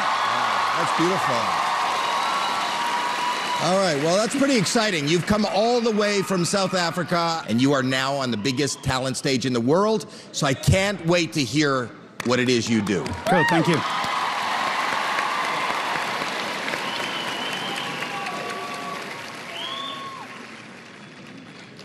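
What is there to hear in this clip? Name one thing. A large crowd cheers and applauds in a big hall.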